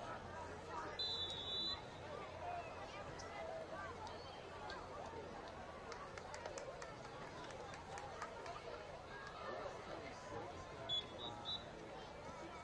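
A referee's whistle blows shortly.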